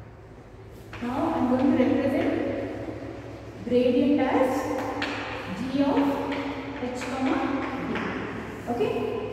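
A woman speaks in a calm, explaining tone, close by.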